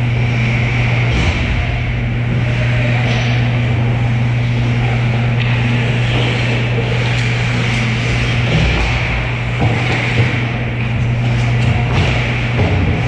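Skate blades scrape and hiss across ice in a large echoing rink.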